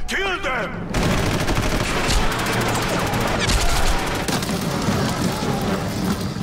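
Automatic rifles fire in rapid bursts.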